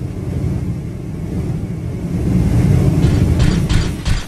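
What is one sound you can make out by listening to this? Flames roar in a burst of fire.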